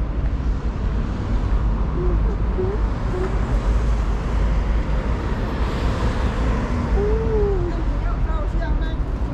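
City traffic hums and rushes from the road below.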